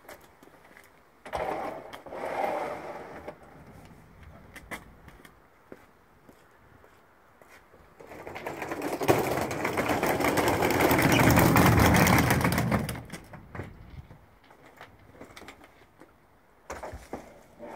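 A suitcase thumps and scrapes as it is loaded into a van.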